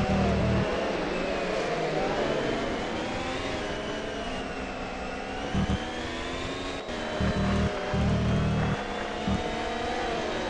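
Low rumbling thumps come as the car's tyres run over kerbs.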